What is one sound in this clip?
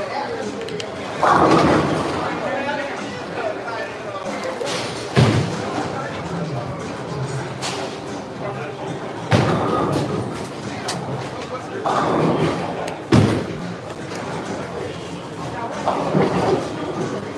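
Bowling balls rumble down lanes.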